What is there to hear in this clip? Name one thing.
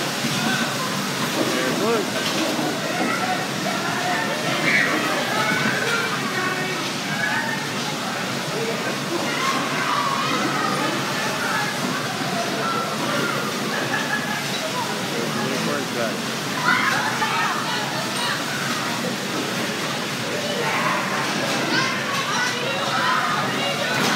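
Bumper cars hum and roll across a floor.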